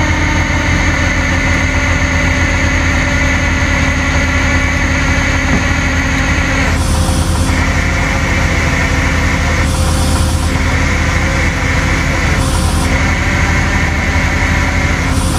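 A truck engine runs with a steady low rumble.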